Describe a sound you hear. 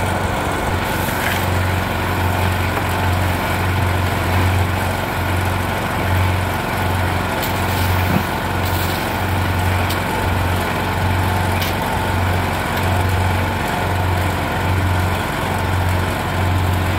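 A cement mixer's engine drones steadily with a pulsing hum.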